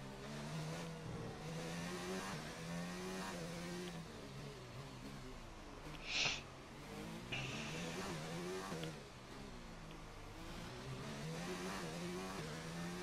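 A racing car engine screams, revving up and dropping sharply with each gear change.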